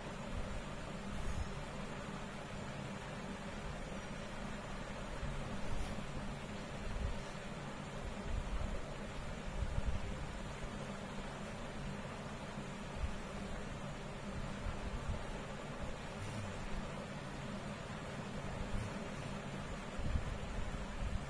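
Fingers tap softly on a phone's touchscreen.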